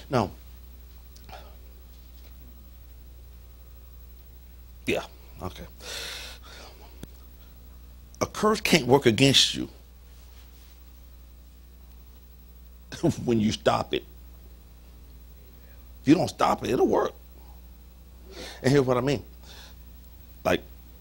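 A man speaks with animation through a microphone in bursts, with long pauses.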